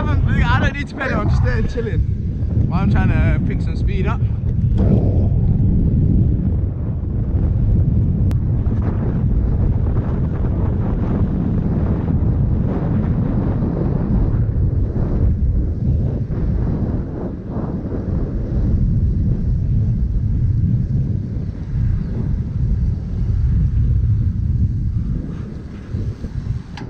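Wind rumbles and buffets loudly across the microphone.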